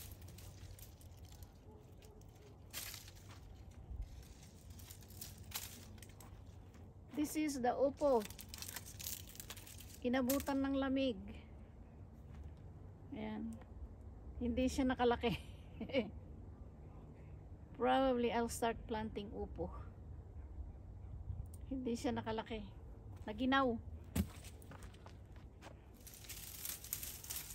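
Dry vine leaves rustle and crackle as they are handled.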